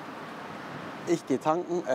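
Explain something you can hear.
A man talks calmly and close to a clip-on microphone.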